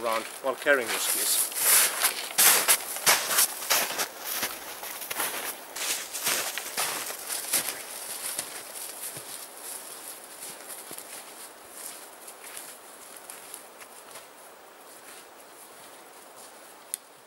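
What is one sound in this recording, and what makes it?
Footsteps crunch through snow and brush, fading into the distance.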